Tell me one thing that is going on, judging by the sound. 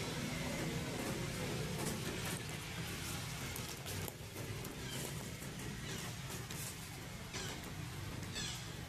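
Leaves and branches rustle as a young monkey swings in a tree.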